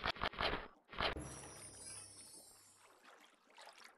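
A bright, shimmering chime rings out and fades.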